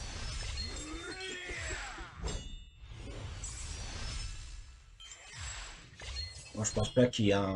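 Electronic whooshing and chiming game effects play.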